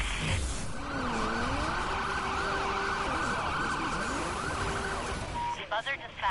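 Police sirens wail close by.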